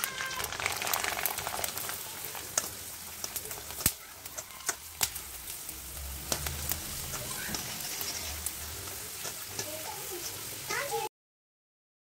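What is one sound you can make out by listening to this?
Oil sizzles and bubbles loudly as food deep-fries.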